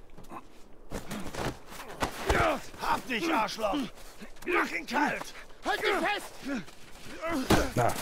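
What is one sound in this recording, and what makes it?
Punches land with heavy thuds in a scuffle.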